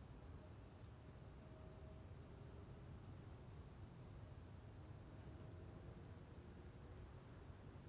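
Traffic hums steadily on city streets.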